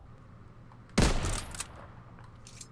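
A scoped rifle fires a single loud shot.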